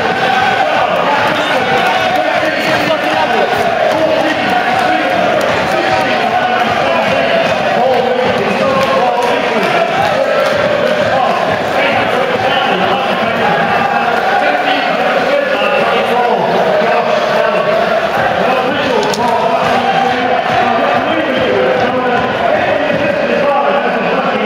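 A large crowd sings and chants loudly across an open stadium.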